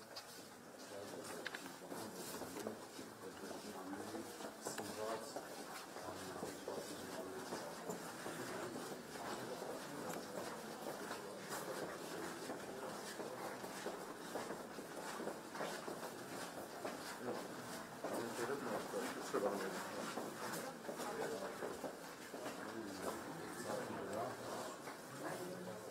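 Several men talk at once, close by, in an echoing corridor.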